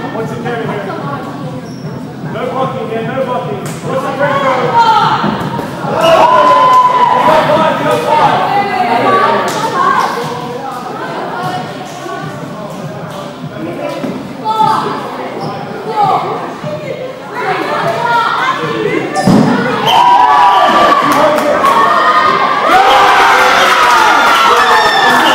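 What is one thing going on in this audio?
Children shout and call out excitedly in a large echoing hall.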